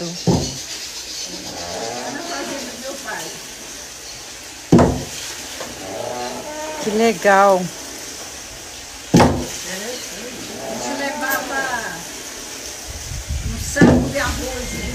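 A heavy wooden pestle thuds down into a wooden mortar.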